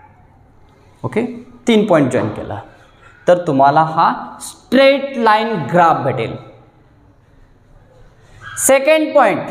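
A young man speaks clearly and calmly, close by, explaining.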